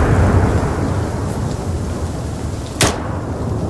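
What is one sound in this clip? A deep explosion rumbles and slowly fades.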